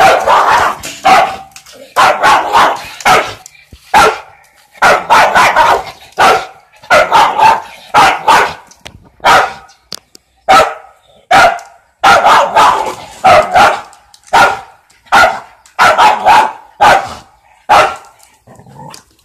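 A dog barks sharply again and again, close by.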